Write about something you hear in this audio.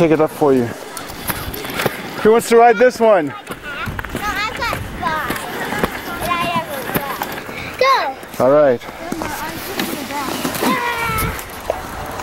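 A young child shouts and squeals excitedly nearby.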